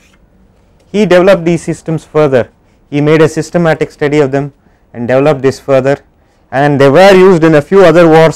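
A man speaks calmly into a clip-on microphone, as if lecturing.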